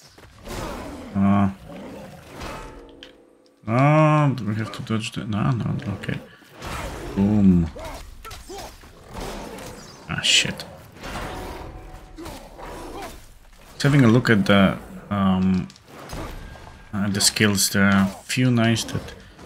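A creature growls and roars loudly.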